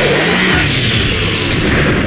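A large monster roars and snarls up close.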